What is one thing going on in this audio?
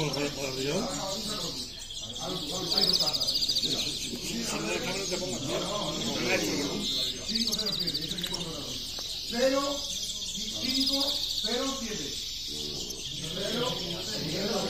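A man talks nearby.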